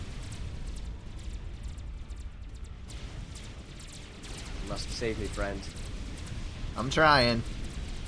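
Electronic game weapons fire with short, sharp zaps.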